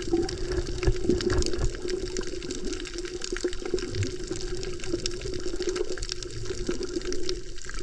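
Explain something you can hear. Water swirls and crackles with a muffled, underwater sound.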